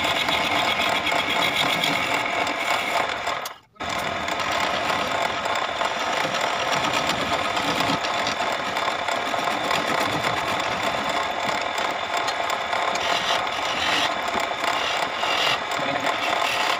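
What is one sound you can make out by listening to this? A chisel scrapes against spinning wood.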